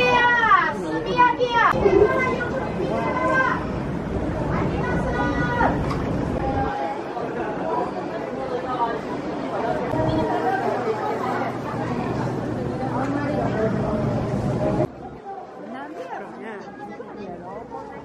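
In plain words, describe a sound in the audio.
A crowd of people chatters in a busy street outdoors.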